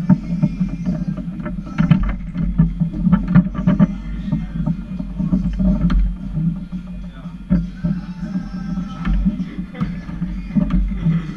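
A foosball ball knocks against the players and the table walls.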